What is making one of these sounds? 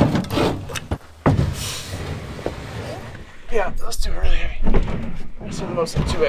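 A wooden panel knocks and scrapes against a truck's tailgate.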